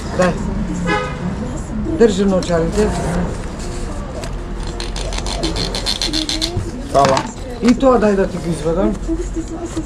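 Coins clink as change is handed over.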